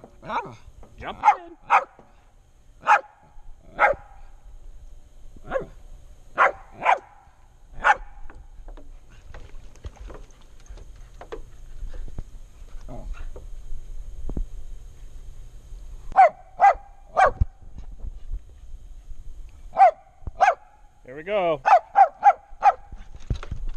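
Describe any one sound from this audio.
A small dog barks sharply, close by, in short bursts.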